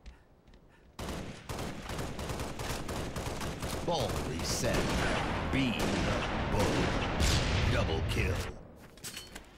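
A sniper rifle fires with sharp cracks.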